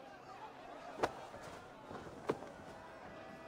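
Heavy footsteps thud onto wooden boards.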